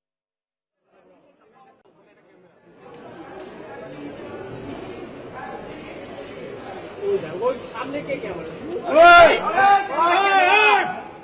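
A crowd of men chatter nearby.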